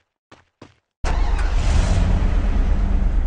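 A vehicle engine starts and rumbles steadily.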